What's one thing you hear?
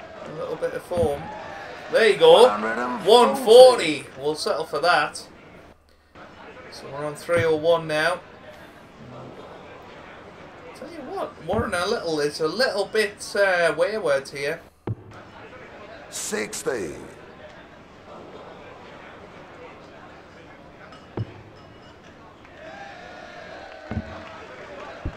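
Darts thud into a dartboard.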